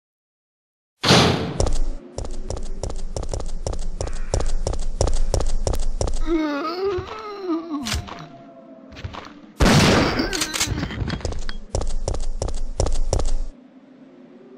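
Footsteps thud quickly on stone.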